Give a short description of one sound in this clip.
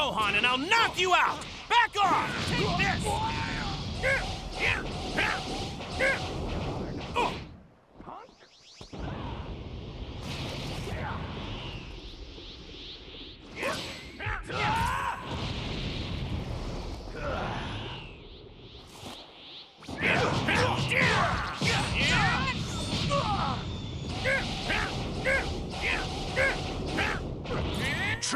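Energy blasts whoosh and burst in a fast fight.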